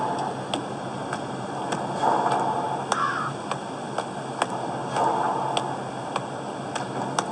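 Footsteps crunch through grass at a steady walking pace.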